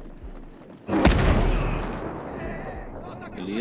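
An explosion bursts nearby, followed by a hissing rush.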